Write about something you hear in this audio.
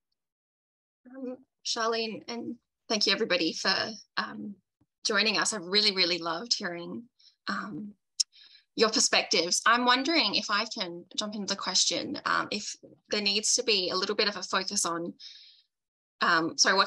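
A young woman talks calmly over an online call.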